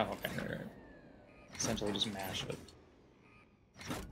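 A switch clicks as a button is pressed.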